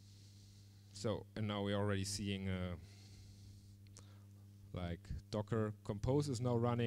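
A man speaks into a microphone with animation.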